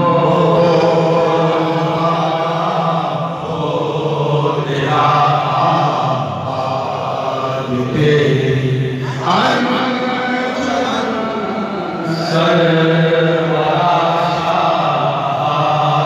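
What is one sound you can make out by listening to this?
A man chants loudly through a microphone and loudspeakers, outdoors.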